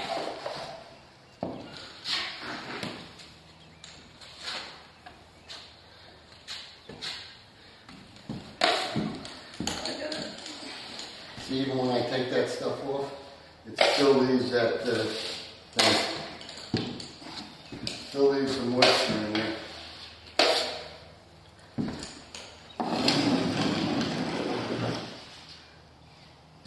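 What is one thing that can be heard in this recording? A hand rasp scrapes roughly along the edge of a drywall board.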